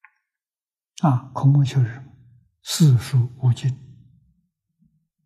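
An elderly man speaks calmly, as if giving a lecture.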